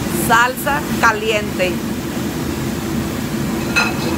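Liquid splashes as a ladle pours broth into a bowl.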